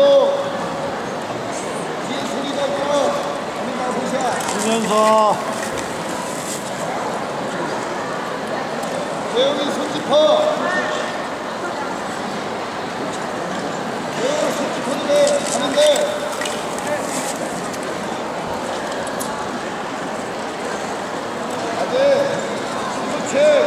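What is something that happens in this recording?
Ice skate blades scrape and hiss across the ice.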